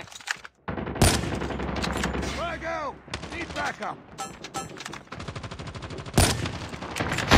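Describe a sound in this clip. A sniper rifle fires sharp, loud shots.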